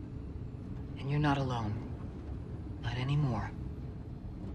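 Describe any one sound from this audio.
A woman speaks softly and calmly up close.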